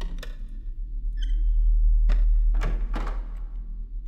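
A wooden door swings open.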